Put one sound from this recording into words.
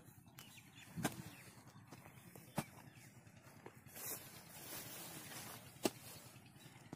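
A hoe thuds into dry earth again and again.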